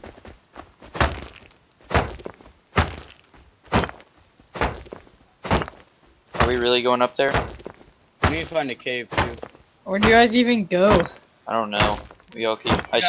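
A stone tool strikes a rock again and again with sharp, dull knocks.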